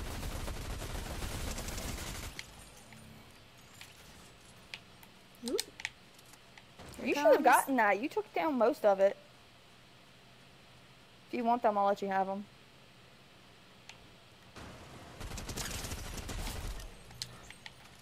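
Gunfire crackles in a video game.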